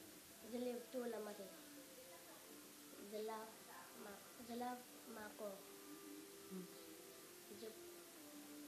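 A young girl speaks calmly in short phrases, close by.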